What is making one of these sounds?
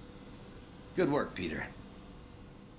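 A man speaks a few quick words nearby.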